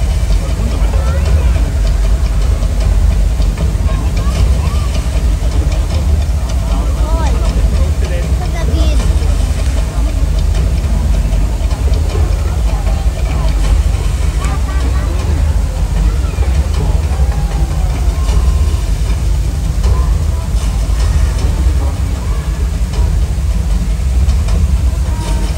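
Heavy rain pours down onto water in a steady roar.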